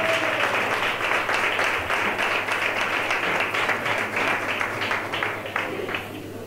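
A group of people clap hands in a fast, steady rhythm.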